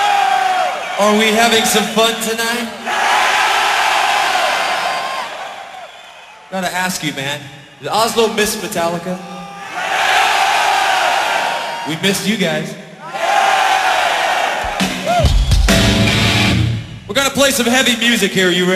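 A man shouts into a microphone through loud speakers, echoing around the hall.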